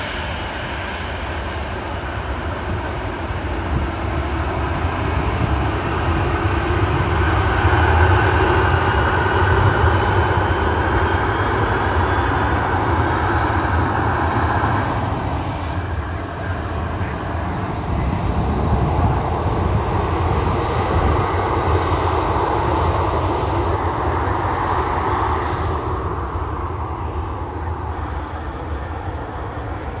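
A jet airliner's engines roar and whine steadily as the plane taxis past.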